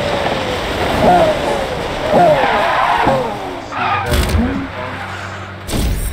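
Tyres screech as a car slides to a stop.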